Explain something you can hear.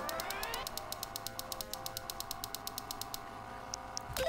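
An electronic keypad beeps rapidly and steadily.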